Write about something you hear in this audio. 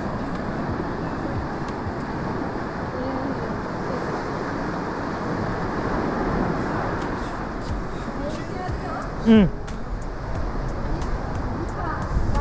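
A river rushes and churns steadily nearby.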